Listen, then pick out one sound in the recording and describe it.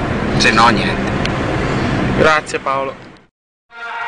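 A man speaks nearby inside a car.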